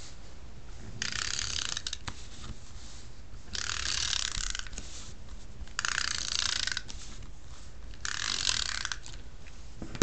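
A tool scrapes firmly across paper in several separate strokes.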